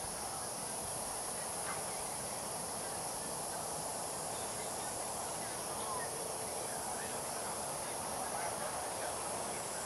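A hawk tears at prey.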